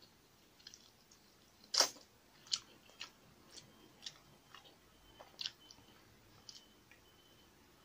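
Fingers squish and tear soft food close up.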